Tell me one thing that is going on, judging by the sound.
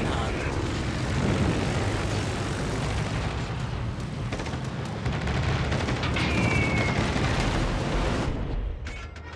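Guns boom and shells explode in loud, rumbling blasts.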